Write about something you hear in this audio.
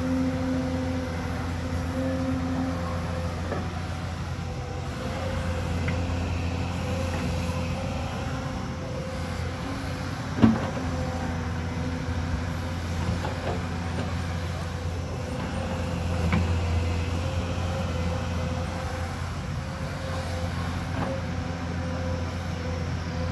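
An excavator's diesel engine rumbles steadily outdoors.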